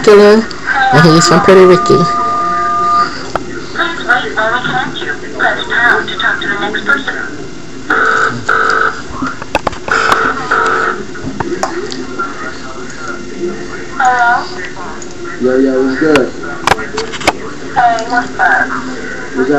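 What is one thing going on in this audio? A young man talks quietly through an online call.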